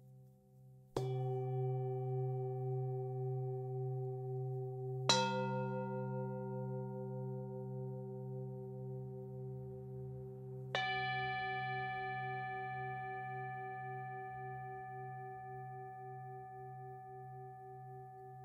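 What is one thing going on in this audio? A mallet strikes a singing bowl three times, each strike ringing out and slowly fading.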